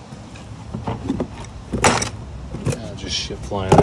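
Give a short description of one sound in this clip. Plastic case latches snap open with sharp clicks.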